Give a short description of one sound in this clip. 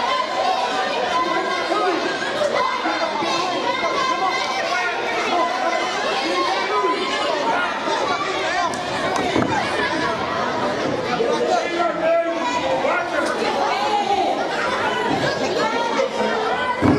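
A crowd chatters and shouts loudly in a large echoing hall.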